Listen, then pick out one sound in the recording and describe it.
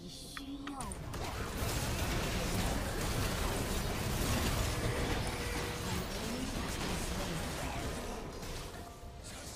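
Video game spells and attacks crackle and burst in a loud fight.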